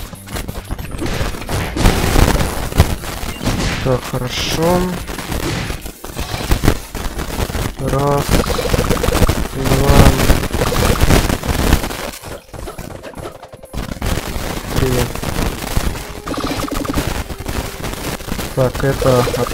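Game music plays with fast electronic beats.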